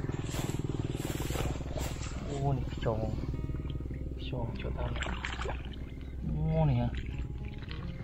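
Muddy water splashes and squelches as grass is pulled up.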